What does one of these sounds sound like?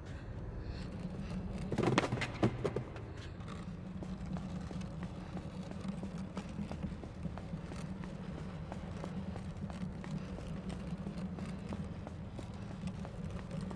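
Light footsteps patter on a hard floor.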